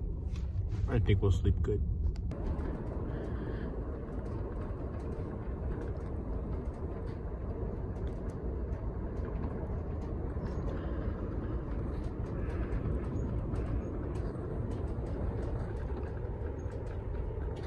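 A passenger train rumbles, heard from inside a cabin.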